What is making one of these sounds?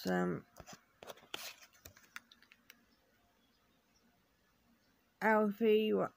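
Paper sheets rustle as they are handled.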